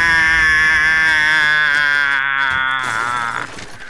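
A wooden barricade smashes apart with splintering cracks.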